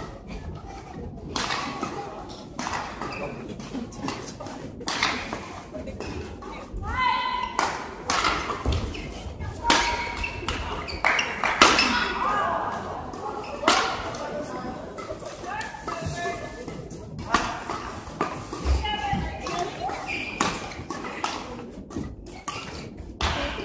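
Rackets smack a shuttlecock back and forth in sharp hits.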